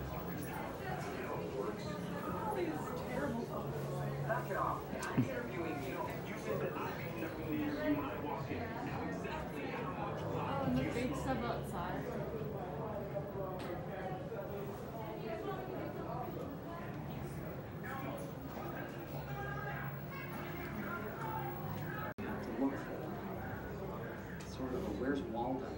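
A man talks through a television speaker.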